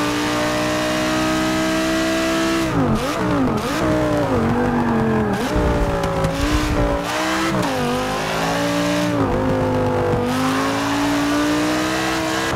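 A racing car engine roars, dropping in pitch as it brakes and rising again as it speeds up.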